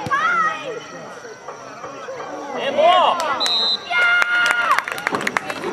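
Young women shout and cheer excitedly outdoors.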